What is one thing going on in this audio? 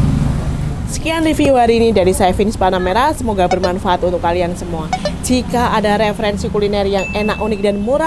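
A middle-aged woman speaks with animation close to a clip-on microphone.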